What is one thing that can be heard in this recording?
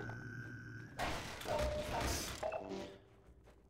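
A crate breaks apart with a loud crash.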